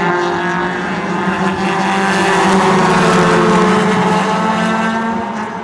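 Several race car engines roar loudly as the cars speed around a track.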